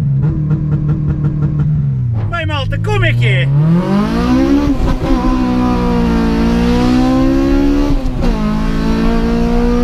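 A car engine revs hard and climbs in pitch as the car speeds up.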